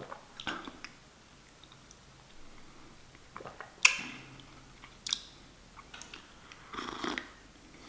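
A young man sips a drink noisily.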